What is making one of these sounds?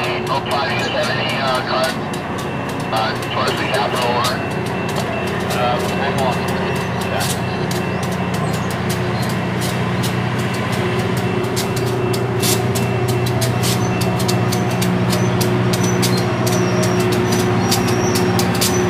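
A train engine rumbles steadily as a train rolls past.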